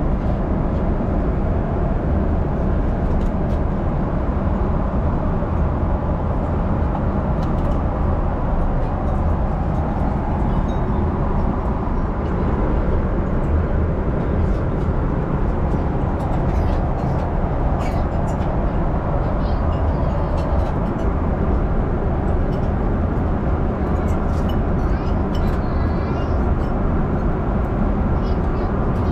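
A steady low roar of aircraft engines fills a cabin.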